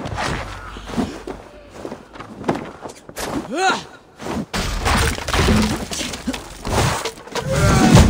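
Footsteps thump across wooden planks.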